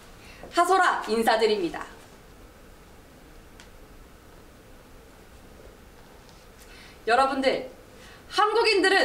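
A young woman speaks brightly and clearly into a microphone close by.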